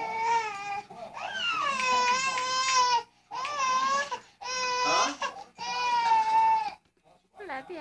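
A baby laughs loudly in high, shrieking bursts, close by.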